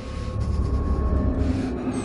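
Paper rustles softly as a note is handled.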